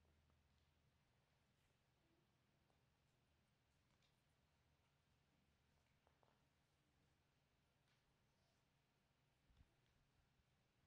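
Small objects tap and scrape faintly on a board.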